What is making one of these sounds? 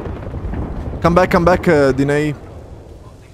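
A young man speaks loudly with animation into a microphone.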